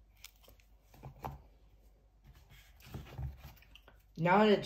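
A small board book knocks softly as it is set into a cardboard box.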